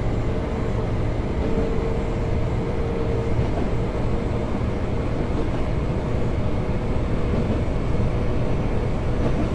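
A train's motor hums with a low drone.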